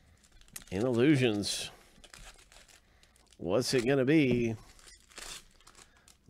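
A foil wrapper crinkles as it is torn open.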